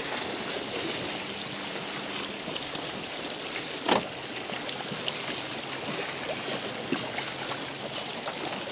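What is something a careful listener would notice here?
Choppy waves slap against the hull of a boat.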